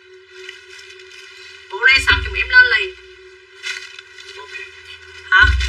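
Clothes rustle as a garment is handled.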